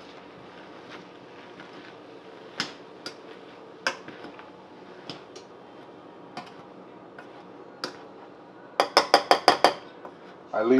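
A metal masher scrapes and taps against a pot.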